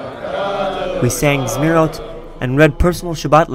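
A young man sings loudly close by.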